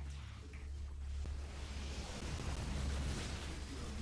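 Laser weapons fire and zap in a game battle.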